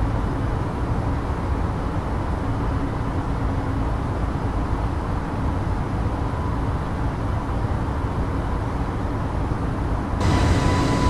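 A jet airliner's engines and rushing air make a steady low roar inside the cockpit.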